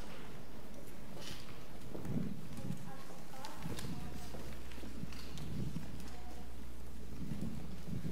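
Footsteps thud softly on a wooden stage.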